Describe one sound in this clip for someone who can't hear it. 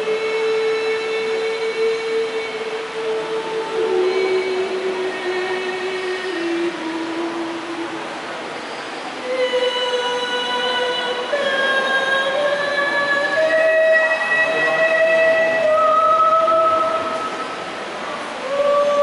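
A group of women sing together.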